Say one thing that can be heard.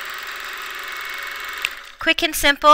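A sewing machine whirs steadily as its needle stitches.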